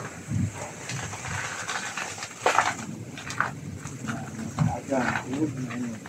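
Banana leaves rustle as a stalk is pulled down.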